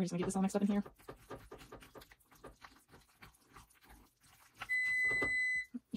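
A spatula scrapes and stirs pasta in a pan.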